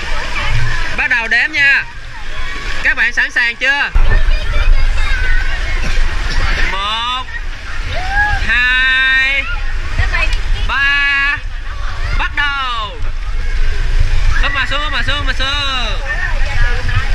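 Young children shout and call out excitedly nearby.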